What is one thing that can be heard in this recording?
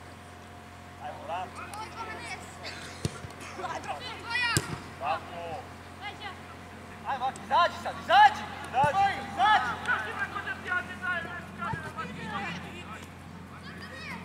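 Young boys shout and call to each other across an open outdoor field.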